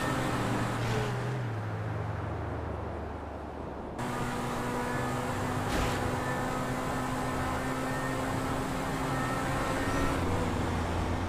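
A sports car engine hums steadily as it speeds along.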